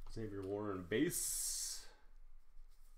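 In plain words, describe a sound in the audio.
A plastic card sleeve rustles as it is handled.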